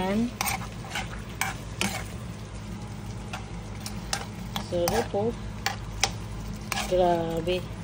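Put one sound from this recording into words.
Thick sauce bubbles gently in a pan.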